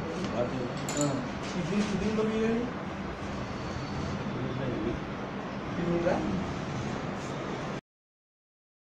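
Men talk quietly nearby in a room.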